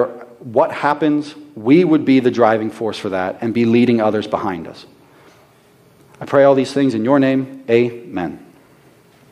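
A young man speaks calmly through a microphone in a large echoing room.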